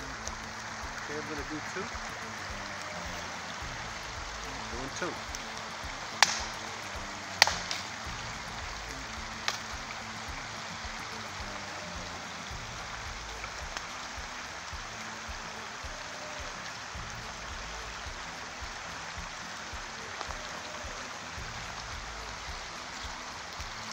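A stream flows and babbles steadily nearby.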